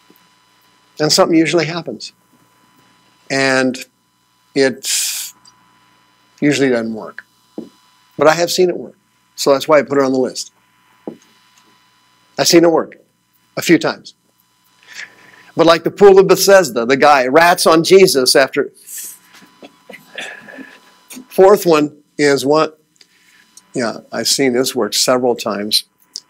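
A man speaks to an audience in a hall, heard through a microphone, with pauses between phrases.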